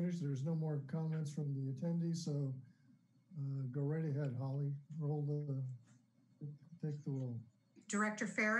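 An older man speaks with animation over an online call.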